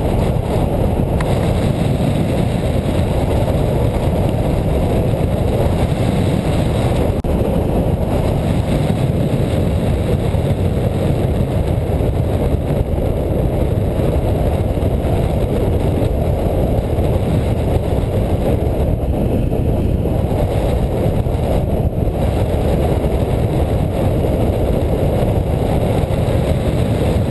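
Strong wind rushes and buffets loudly past the microphone, steady throughout.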